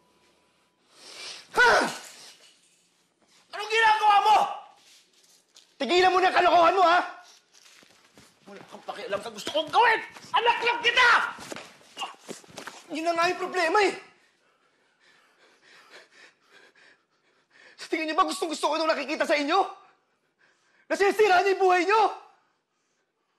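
A man shouts angrily close by.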